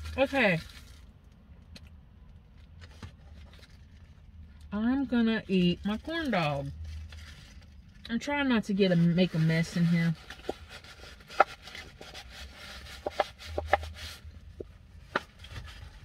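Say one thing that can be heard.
Paper crinkles and rustles as a woman handles a wrapper.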